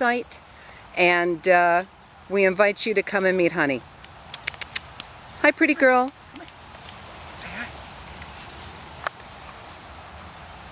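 A dog sniffs at the grass.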